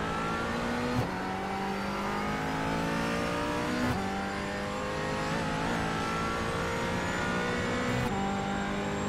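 Gear shifts snap sharply as the race car changes up.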